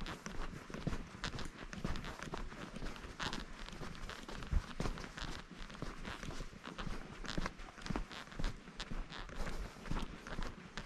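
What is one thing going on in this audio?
Footsteps crunch quickly on a dirt trail.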